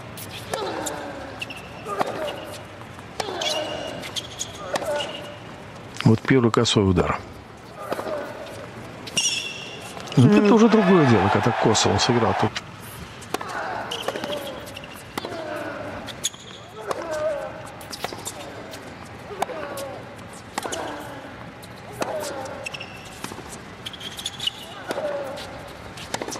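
A tennis ball is struck back and forth with rackets.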